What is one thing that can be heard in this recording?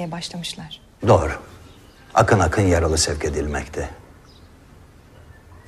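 A middle-aged man speaks in a low voice nearby.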